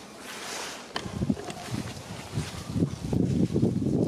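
Footsteps crunch through dry leaves on the ground.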